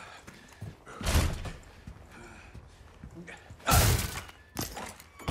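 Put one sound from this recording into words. A wooden door creaks and bangs open.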